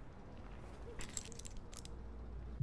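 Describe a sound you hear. A plastic cup is set down on a wooden table with a light knock.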